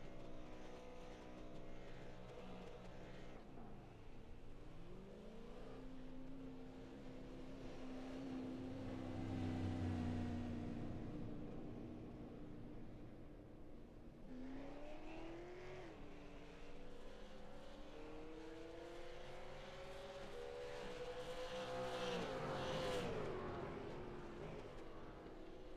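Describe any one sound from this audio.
A race car engine idles and revs up and down.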